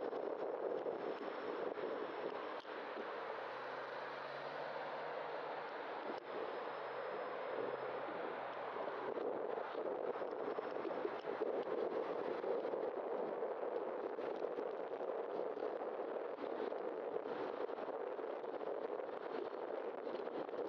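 Wind rushes steadily over the microphone.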